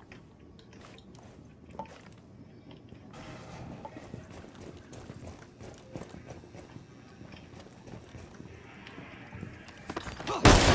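Footsteps tread softly across a hard floor.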